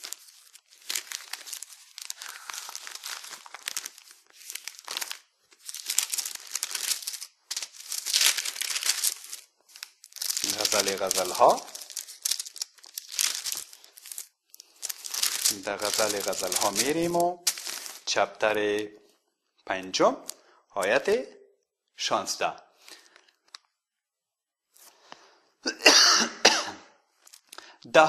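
A man reads aloud in a low voice close to a clip-on microphone.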